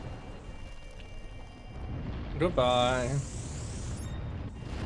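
A magical energy blast bursts with a loud whoosh.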